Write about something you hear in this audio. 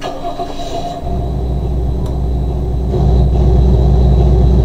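A van engine rumbles as the van drives off.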